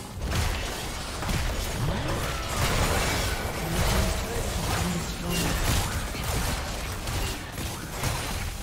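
Spell blasts and impacts crackle and boom in a fast, busy fight.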